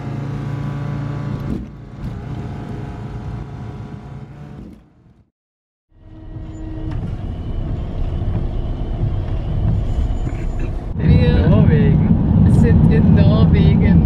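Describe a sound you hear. A vehicle engine hums steadily from inside the car.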